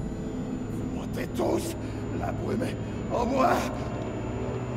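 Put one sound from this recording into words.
A man speaks tensely and threateningly, close by.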